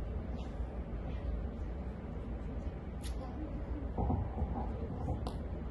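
A woman speaks calmly in a large echoing hall.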